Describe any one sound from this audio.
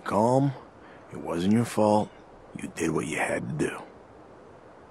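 A man speaks calmly and softly.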